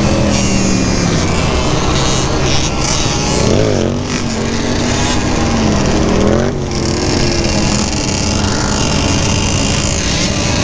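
A quad bike engine roars and revs up and down close by.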